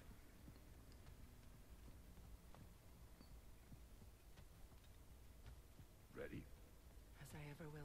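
Heavy footsteps thud on wooden planks.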